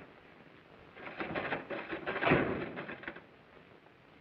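A typewriter clatters with quick keystrokes.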